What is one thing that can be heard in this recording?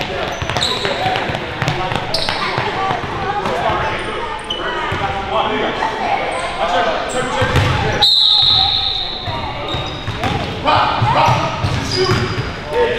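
Sneakers squeak sharply on a wooden court, echoing in a large hall.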